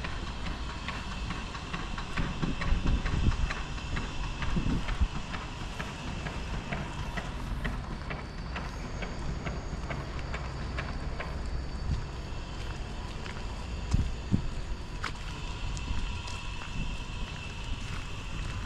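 Footsteps tap steadily on wet paving stones close by.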